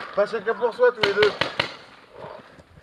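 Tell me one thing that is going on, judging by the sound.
A paintball marker fires a few quick shots.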